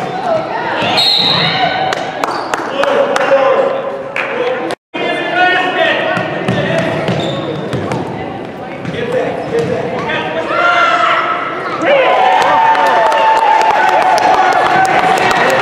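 Children shout and call out across the court.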